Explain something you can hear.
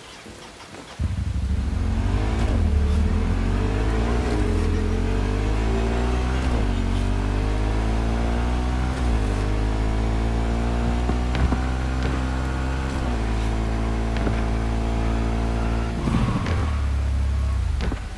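A motorcycle engine revs and roars as it speeds up and shifts gears.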